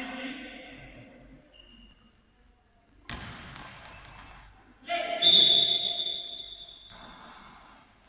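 A man calls out and shouts instructions in a large echoing hall.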